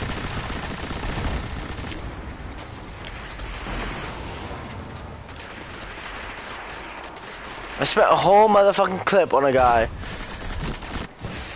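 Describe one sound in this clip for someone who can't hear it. Gunfire from a video game rattles and booms.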